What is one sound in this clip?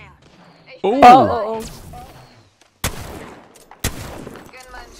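Gunshots crack in a video game.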